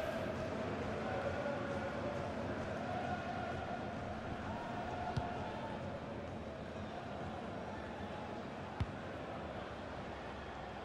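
A large crowd roars and chants steadily in a stadium.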